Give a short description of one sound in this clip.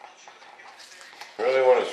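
A brush stirs and scrapes inside a small cup.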